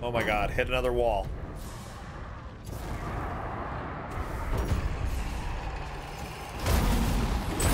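A dragon breathes fire with a roaring rush.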